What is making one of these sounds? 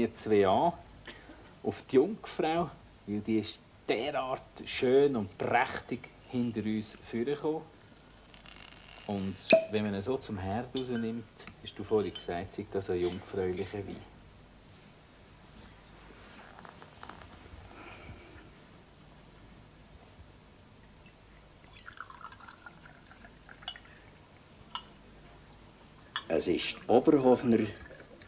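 A middle-aged man talks calmly up close.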